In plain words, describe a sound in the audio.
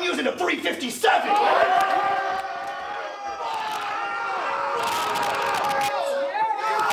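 A crowd of men cheers and shouts loudly.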